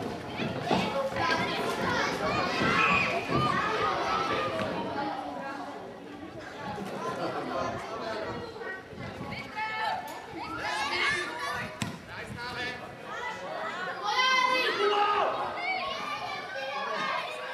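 Children shout and call out across an open field.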